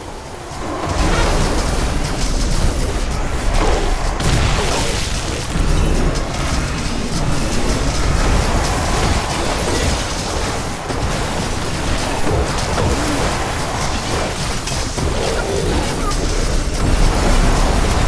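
Energy weapons fire in rapid bursts.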